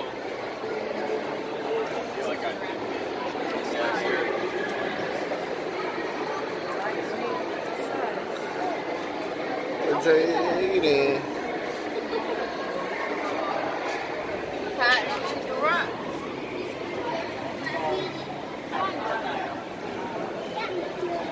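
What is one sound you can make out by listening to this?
A crowd of people chatters in an echoing indoor space.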